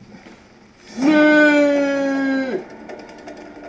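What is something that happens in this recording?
A young man screams loudly into a nearby microphone.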